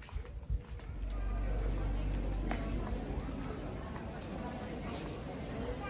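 A crowd of people murmurs along a busy street outdoors.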